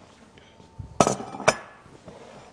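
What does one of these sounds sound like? Dishes clatter sharply on a counter.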